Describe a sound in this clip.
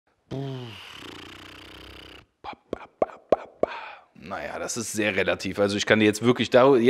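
A man speaks close into a microphone, calmly and with animation.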